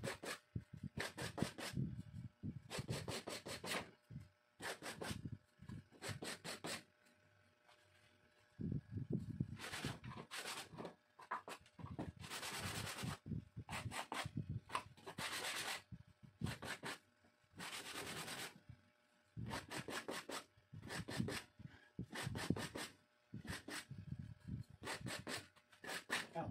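A knife scrapes and shaves wood in quick, repeated strokes, close by.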